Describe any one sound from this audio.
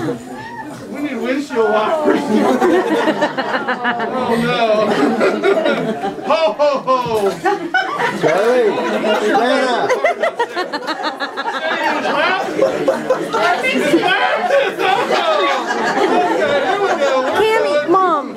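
Several people talk and laugh together close by.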